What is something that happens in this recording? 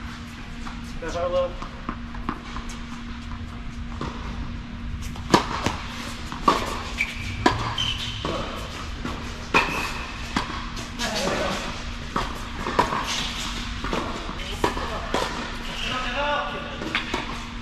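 Sneakers squeak on a court.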